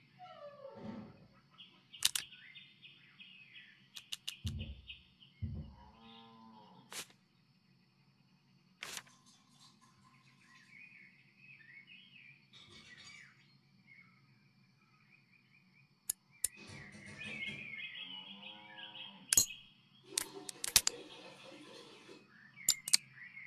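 Small metal parts click into place.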